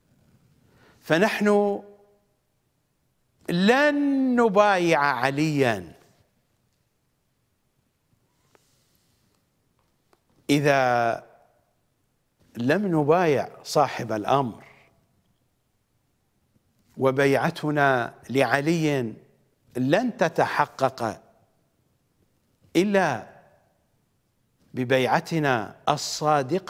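A middle-aged man speaks forcefully into a close microphone, in bursts with pauses.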